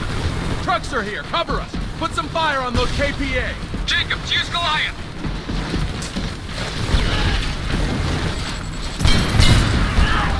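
Gunfire and explosions rumble from a distant battle.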